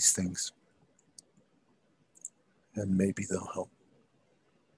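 A man speaks briefly over an online call, heard through a microphone.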